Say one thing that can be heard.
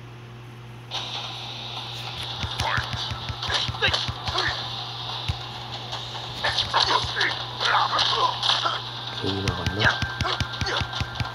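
Game fighters grunt and shout as they strike.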